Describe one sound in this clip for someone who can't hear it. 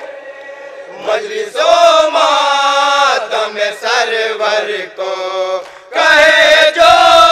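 A group of men sings out loudly in chorus.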